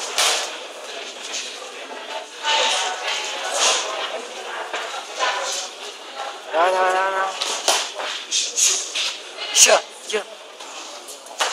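Boxing gloves thud against each other in quick punches.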